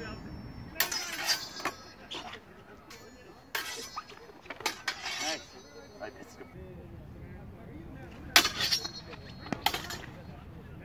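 Wooden practice swords clack and clash together in sharp, ringing strikes.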